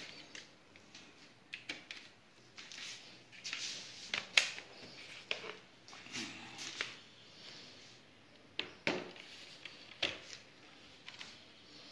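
Objects clatter and knock as a hand handles them.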